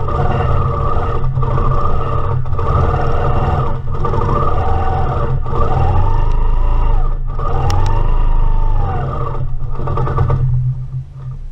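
A sewing machine motor hums and whirs as it stitches quickly, with pitch rising and falling.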